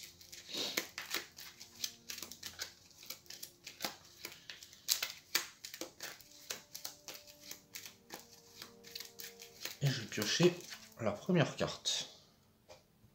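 Playing cards are shuffled by hand with quick riffling clicks.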